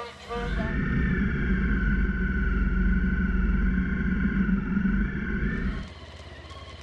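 A motorcycle engine drones as it rides along.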